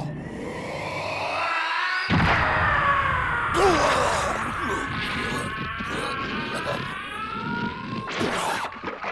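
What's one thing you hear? A man yells fiercely, close by.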